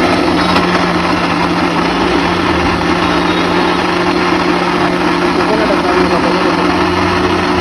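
A blender whirs loudly and steadily, churning a thick drink.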